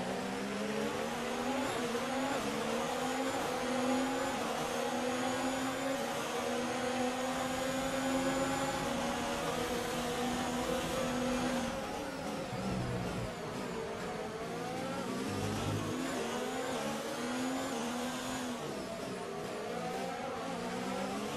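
A racing car engine screams at high revs, rising through the gears.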